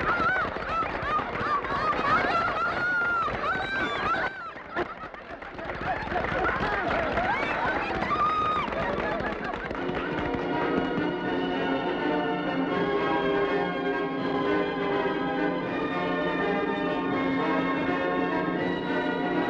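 A crowd of young women cheers and shouts excitedly.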